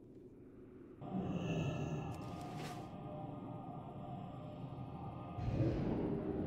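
A magic spell crackles and hums loudly.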